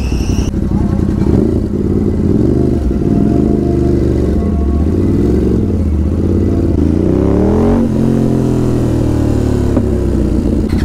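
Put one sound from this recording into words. A motorcycle engine revs up and down repeatedly.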